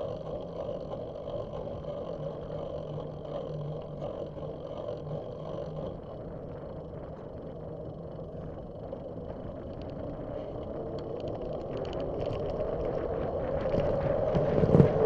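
Wind rushes and buffets loudly past, growing stronger toward the end.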